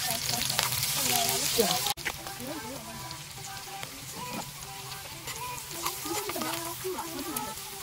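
A metal spoon scrapes against a frying pan.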